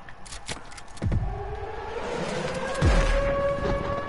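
Gunshots ring out.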